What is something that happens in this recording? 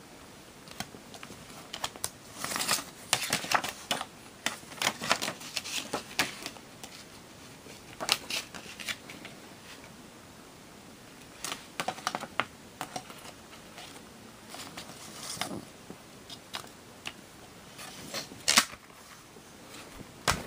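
A hand clicks and rattles a plastic CD jewel case.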